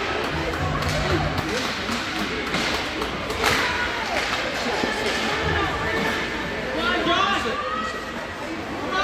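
Spectators chatter nearby.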